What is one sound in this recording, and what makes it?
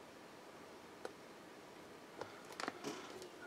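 Small plastic model pieces click and tap against each other.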